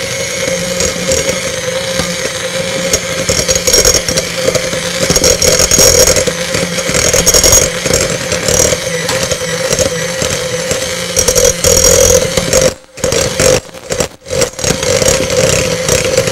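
An electric hand mixer whirs as it beats batter in a bowl.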